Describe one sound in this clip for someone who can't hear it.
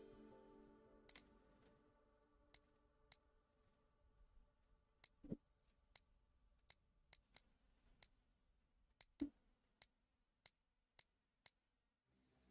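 Short soft interface clicks tick now and then.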